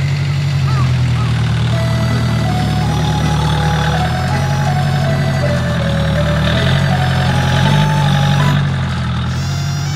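A compact diesel tractor engine chugs as the tractor moves.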